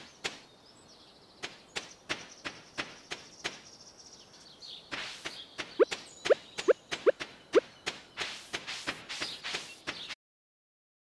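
Quick footsteps patter steadily on a dirt path.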